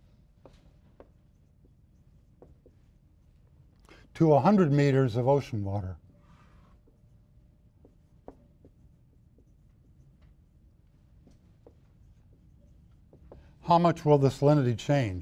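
A marker scratches on a whiteboard.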